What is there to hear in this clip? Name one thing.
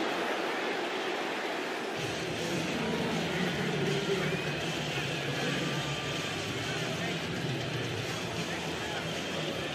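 A large crowd cheers and murmurs steadily in a big stadium.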